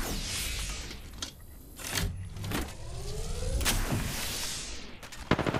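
A shield recharge device whirs and hums as it charges.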